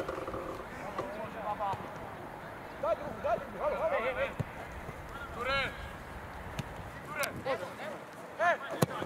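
Young men shout to each other across an open pitch outdoors.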